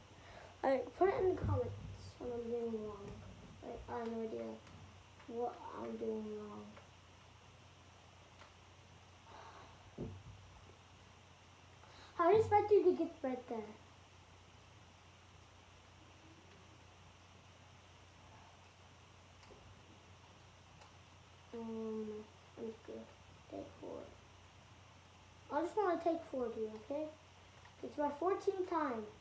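A young boy talks with animation close by, in short bursts.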